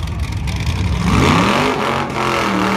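A heavy engine revs up sharply and roars loudly.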